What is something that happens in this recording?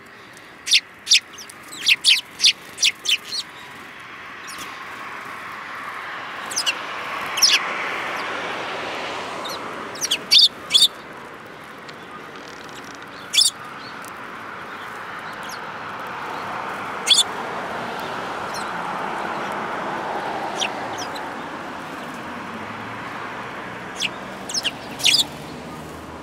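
Sparrows chirp close by in short, sharp bursts.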